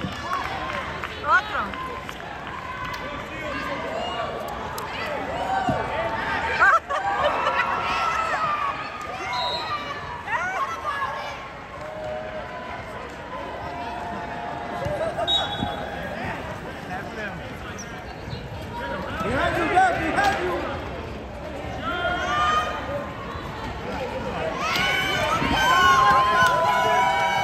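Wheelchair tyres squeak sharply on a hard court floor.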